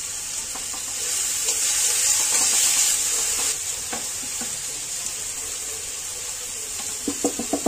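A spatula stirs food in a metal pan, scraping against it.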